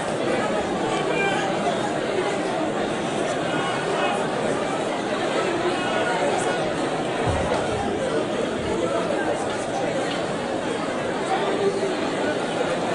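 A crowd of men and women talk over one another nearby in an echoing room.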